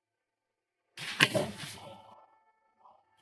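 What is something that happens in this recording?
A body thuds onto a hard floor.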